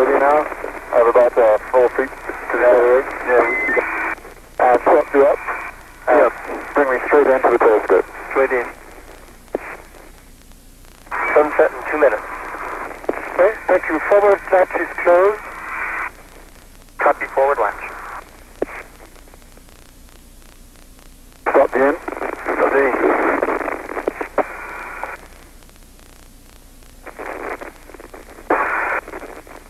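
A man speaks calmly over a crackly radio link, in short bursts.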